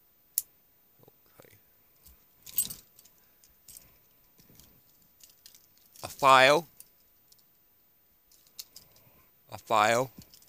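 A young man speaks into a headset microphone in loud, drawn-out bursts.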